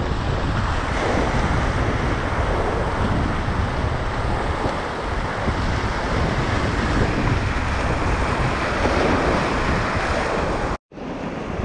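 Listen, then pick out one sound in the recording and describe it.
Whitewater rushes and roars loudly all around.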